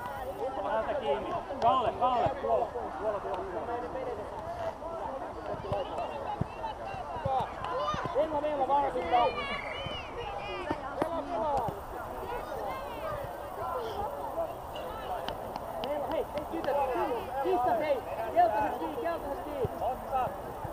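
Children shout and call out to each other.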